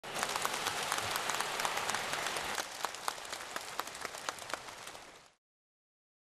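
A large crowd applauds in a big hall, thinning out and fading away.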